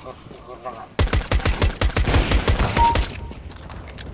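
Rapid gunshots crack in quick succession.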